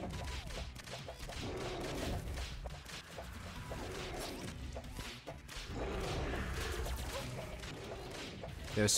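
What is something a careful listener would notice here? Magic weapon blasts zap and crackle rapidly.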